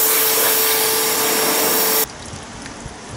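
A pressure washer sprays water with a loud, steady hiss.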